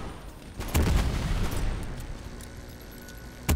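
A rifle's metal parts click during a reload.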